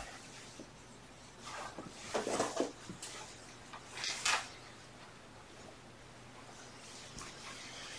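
Footsteps thud on a carpeted floor.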